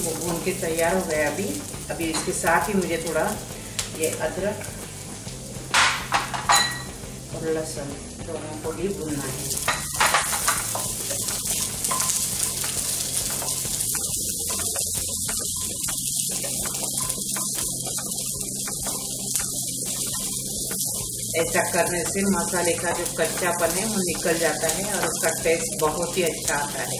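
A wooden spatula scrapes and stirs in a pan.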